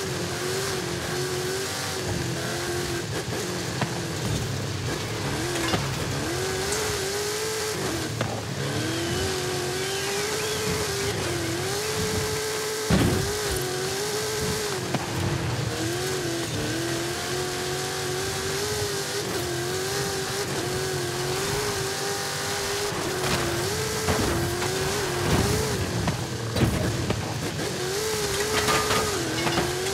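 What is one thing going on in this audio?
A car engine roars and revs up and down as it races.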